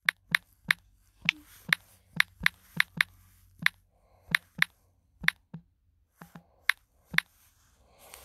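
A touchscreen keyboard clicks with each key tap.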